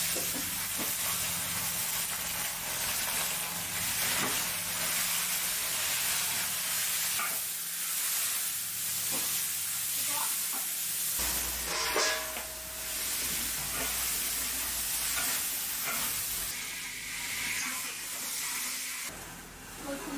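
Food sizzles loudly in a hot wok.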